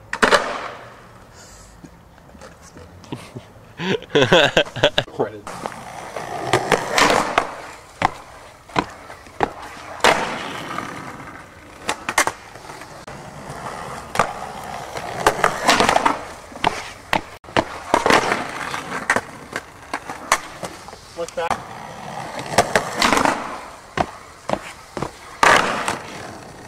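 A skateboard clacks and slaps down hard on concrete.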